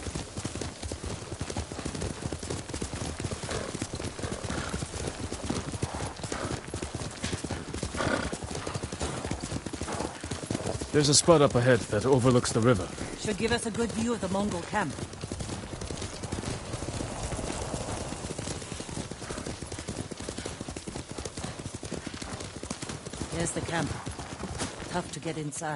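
A horse gallops steadily over grass with fast, drumming hoofbeats.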